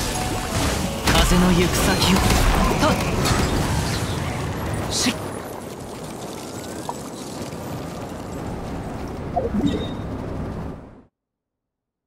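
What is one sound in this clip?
Game combat effects whoosh and crash with bursts of energy.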